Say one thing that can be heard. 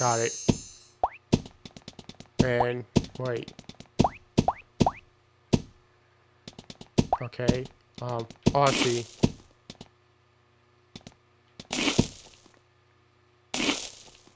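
Short game sound effects pop and crumble as blocks are dug away.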